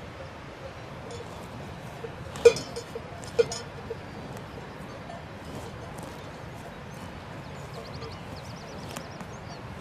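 A cow tears and chews grass.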